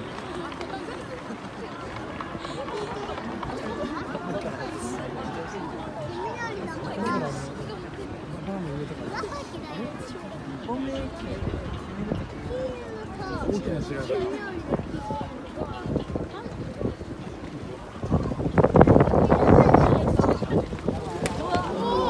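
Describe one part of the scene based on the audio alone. A crowd of spectators chatters in a large open stadium.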